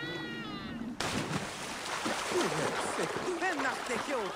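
Water splashes as a figure swims.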